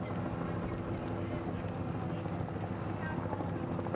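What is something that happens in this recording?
A motorcycle engine hums steadily nearby.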